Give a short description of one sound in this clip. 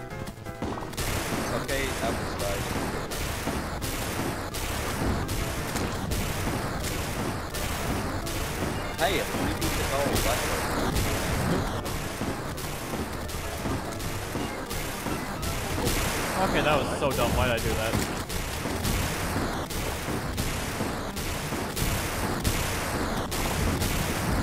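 Rapid magical zaps and explosions burst in quick succession.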